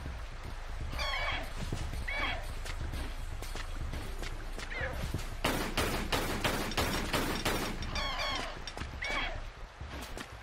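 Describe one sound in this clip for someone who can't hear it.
A large bird screeches.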